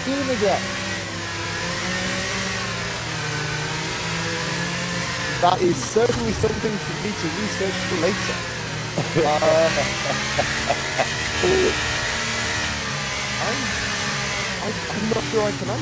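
A racing car engine hums steadily at low speed.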